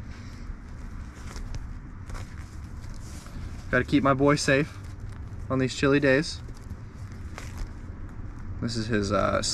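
Fabric rustles as a bag is handled.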